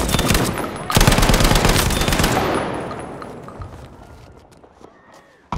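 A rifle fires a loud shot that rumbles and echoes away.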